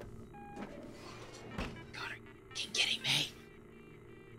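An old computer terminal powers on with electronic chirps and whirs.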